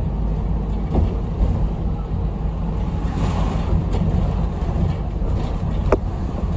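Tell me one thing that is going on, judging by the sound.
A bus body rattles and knocks over the road.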